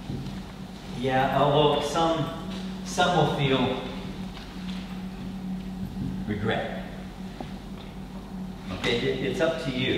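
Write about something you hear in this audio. A man speaks to a group in an echoing hall.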